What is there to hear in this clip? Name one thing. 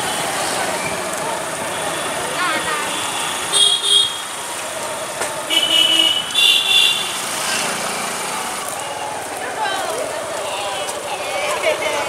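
A motorcycle engine hums nearby.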